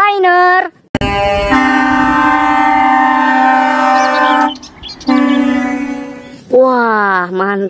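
A truck's horn blares loudly and steadily.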